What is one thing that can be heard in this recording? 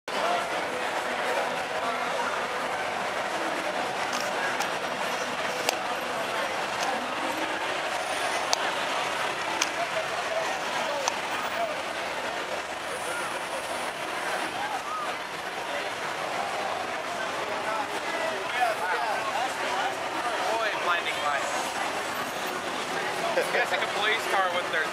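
Men talk nearby in loud voices.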